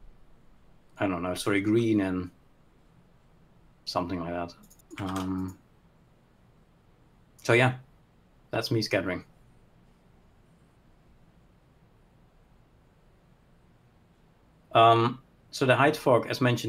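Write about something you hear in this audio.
A man speaks calmly over an online call, in short bursts with pauses.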